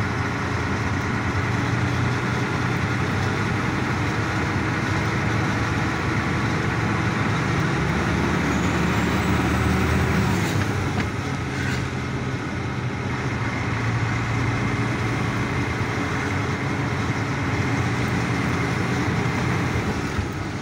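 A vehicle's engine hums steadily as it drives along a road.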